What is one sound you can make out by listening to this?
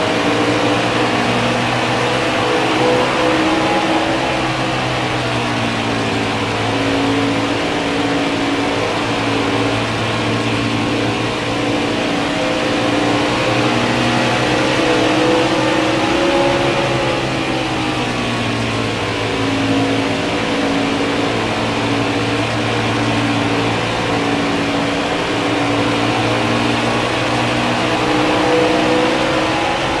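A race truck engine roars steadily at high speed.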